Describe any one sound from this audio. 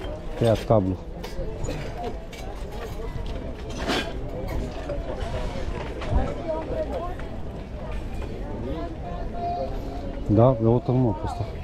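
A crowd of people chatter and murmur outdoors.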